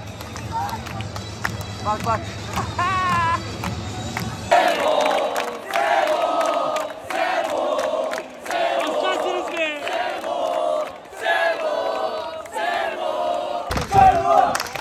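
A crowd of young men chants and cheers loudly in an echoing hall.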